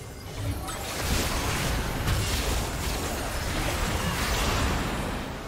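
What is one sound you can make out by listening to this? Fantasy spell effects whoosh and crackle during a fight.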